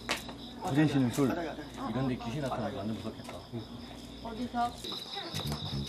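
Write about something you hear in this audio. Young men and women chat casually in a small room.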